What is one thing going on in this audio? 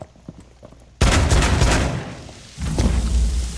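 A loud blast bursts through a wall.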